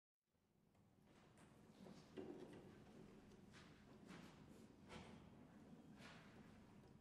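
A string quartet plays, with violins, viola and cello bowing together in a large room.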